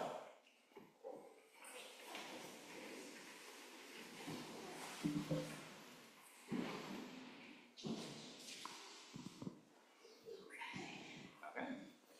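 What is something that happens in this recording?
Footsteps move softly across a floor.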